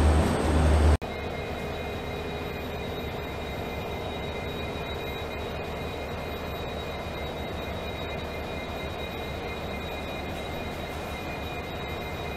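A diesel locomotive engine idles with a steady hum and whine.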